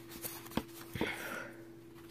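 Cards rustle as they are handled.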